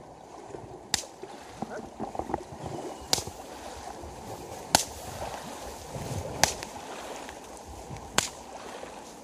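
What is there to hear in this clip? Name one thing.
A stick slaps sharply against the surface of the water.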